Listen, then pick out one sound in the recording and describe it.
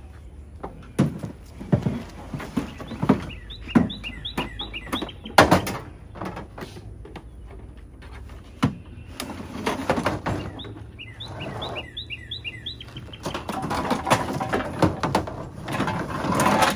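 Objects thump and clatter in a truck bed.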